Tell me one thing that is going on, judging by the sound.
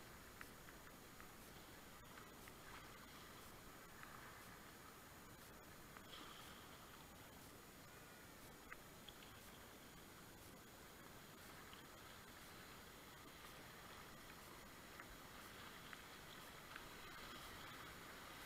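A kayak paddle splashes into the water.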